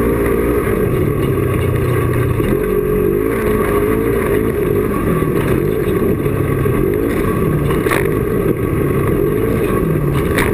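A twin-cylinder side-by-side UTV engine runs hard at speed, its pitch rising and falling.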